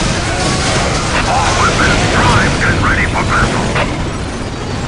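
Laser guns fire in rapid bursts during a battle.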